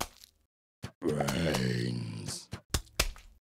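A cartoon zombie groans.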